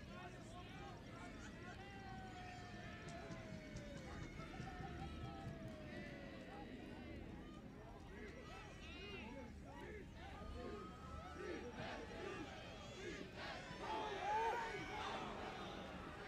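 A crowd cheers and shouts outdoors, swelling louder toward the end.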